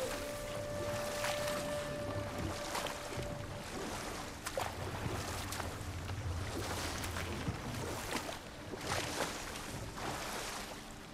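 Paddles splash and swish through water.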